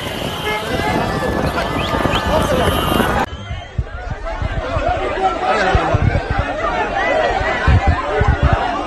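A large crowd cheers and chatters loudly outdoors.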